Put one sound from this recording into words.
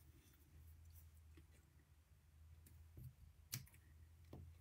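Scissors snip through thin card a few times.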